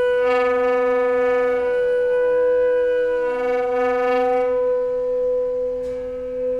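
A saxophone plays long held notes.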